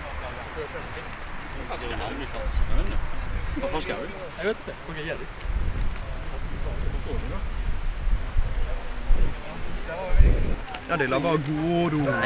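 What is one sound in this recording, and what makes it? Teenagers chatter outdoors in a group.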